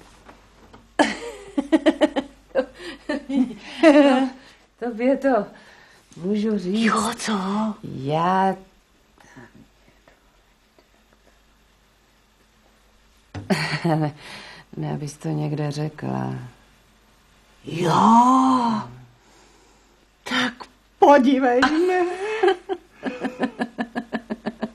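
A middle-aged woman talks with animation, close by.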